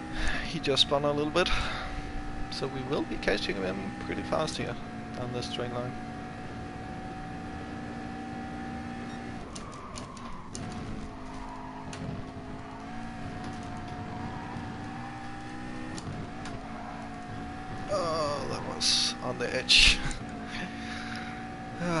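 A racing car engine roars steadily, rising and falling in pitch with gear changes.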